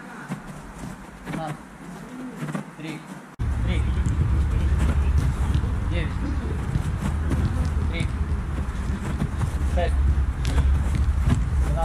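Footsteps patter on artificial turf.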